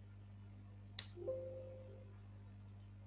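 A computer alert chimes once.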